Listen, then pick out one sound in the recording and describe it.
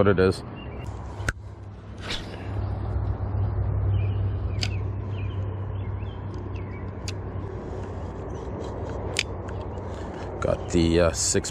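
A fishing reel whirs steadily as line is wound in.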